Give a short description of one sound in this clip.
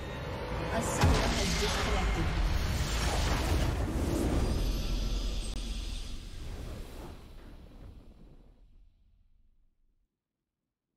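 A triumphant victory fanfare swells and then fades away into silence.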